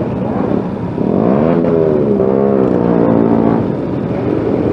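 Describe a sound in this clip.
Other motorcycle engines rev nearby.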